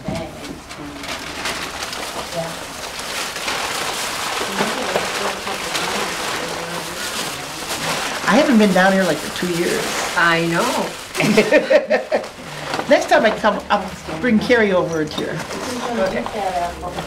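Tissue paper rustles and crinkles close by.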